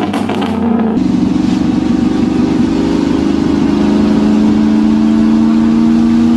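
A truck engine drones steadily from inside the cab while driving.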